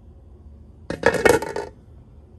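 A glass lid clinks onto a metal pot.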